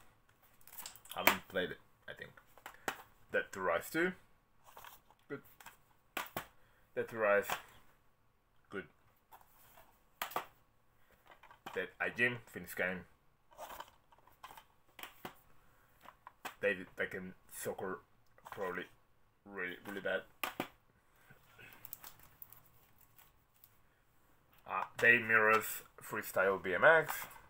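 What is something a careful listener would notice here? Plastic game cases clatter and click as a man handles them.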